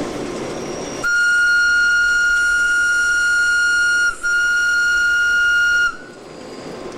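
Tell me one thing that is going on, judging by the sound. A train horn sounds a long steady blast.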